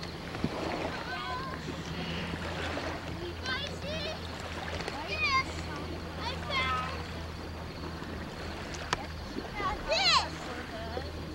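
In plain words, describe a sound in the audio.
Young children shout and squeal in high voices nearby.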